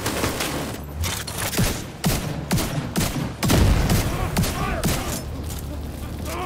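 Gunfire cracks in quick bursts, with loud booming shots.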